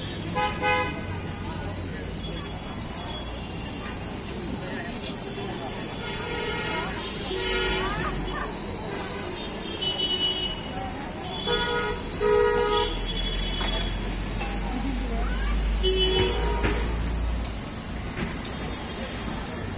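Batter sizzles and crackles in hot oil.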